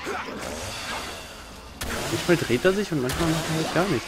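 Sword blows strike a beast in a fight.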